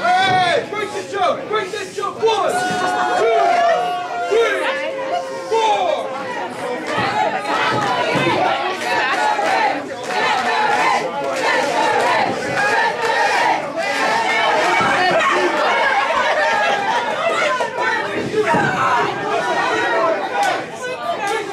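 A crowd cheers and shouts.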